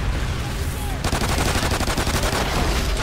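Two pistols fire in fast repeated shots.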